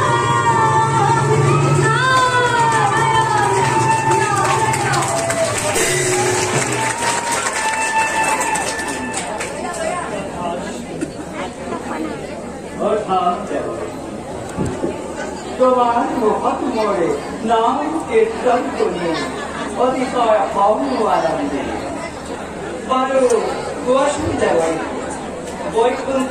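A young performer sings loudly with a wavering voice.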